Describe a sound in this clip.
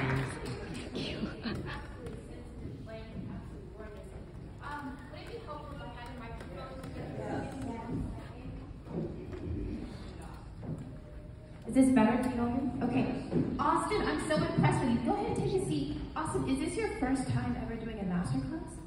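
Audience members murmur and chat quietly nearby.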